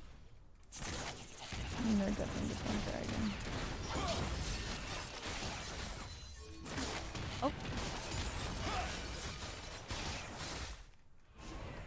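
Fantasy battle effects crackle and clash in a busy fight.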